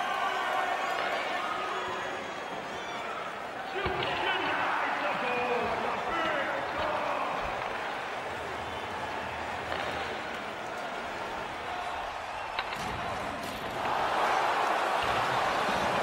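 A crowd murmurs and cheers in a large arena, swelling near the end.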